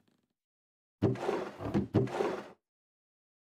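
A wooden barrel creaks open.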